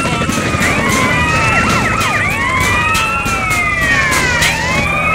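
Police sirens wail and warble close by.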